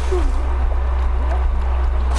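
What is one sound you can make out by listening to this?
Water bubbles up to the surface.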